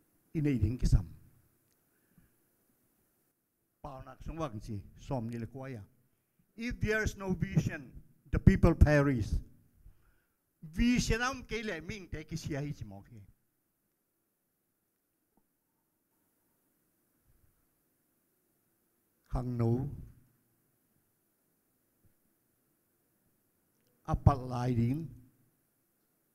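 An elderly man speaks with feeling into a microphone, in bursts with long pauses.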